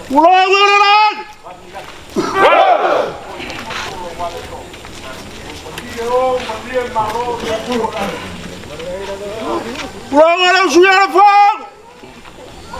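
An elderly man calls out loudly in long, drawn-out chanting cries.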